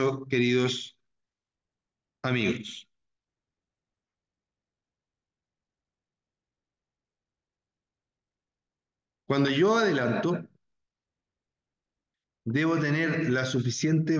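A man speaks calmly through an online call microphone, with long pauses.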